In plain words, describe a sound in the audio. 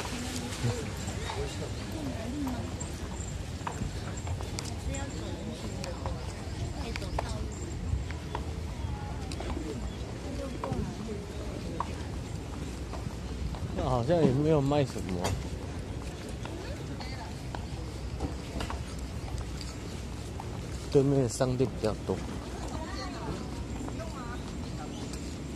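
People chatter and call out in a busy street outdoors.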